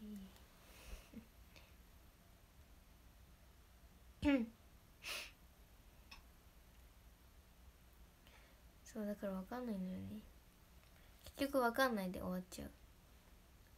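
A young woman speaks softly and close to a microphone, in short bursts with pauses.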